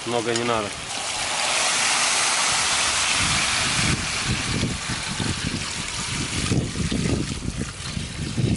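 Water pours and splashes into a hot pot.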